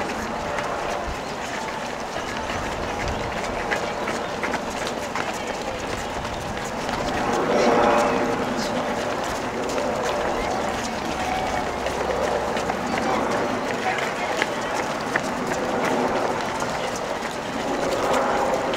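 Many running shoes patter on pavement.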